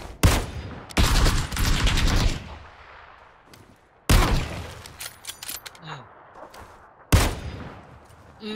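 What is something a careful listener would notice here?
Rifle shots crack in sudden bursts and echo away.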